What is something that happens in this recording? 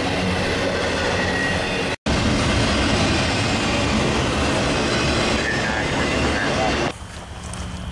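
A freight train rumbles and clatters loudly past on the tracks.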